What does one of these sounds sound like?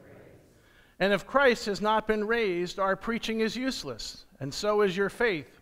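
A man reads aloud clearly through a microphone.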